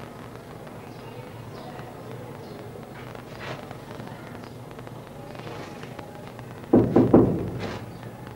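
A crowd murmurs softly in the background.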